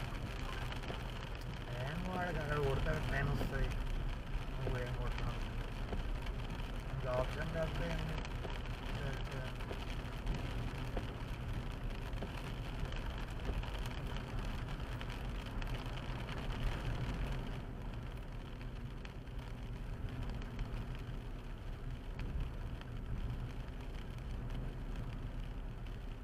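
Tyres hiss on the wet road.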